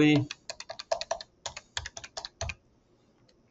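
A phone keypad beeps quickly as buttons are pressed.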